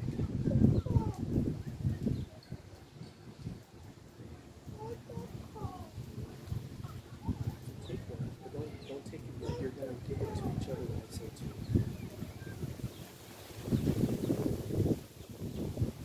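Wind rumbles across the microphone in gusts.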